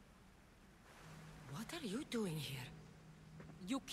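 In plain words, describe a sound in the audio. A young man speaks quietly into a close microphone.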